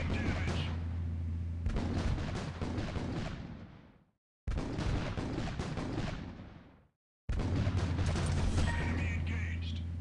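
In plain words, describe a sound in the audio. Guns fire in rapid bursts as boats fight on the water.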